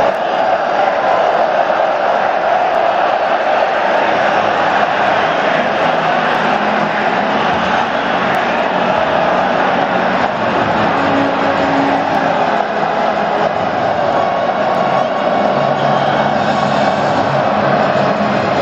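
A huge stadium crowd roars and chants steadily.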